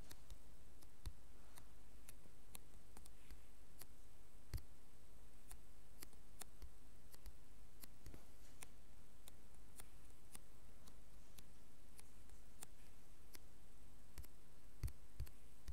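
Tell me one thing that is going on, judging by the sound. Blocks are broken and placed with short, repeated tapping clicks.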